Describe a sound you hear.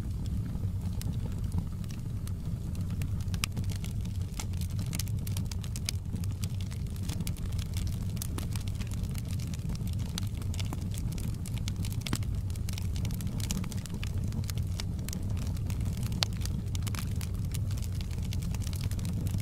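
Burning logs crackle and pop.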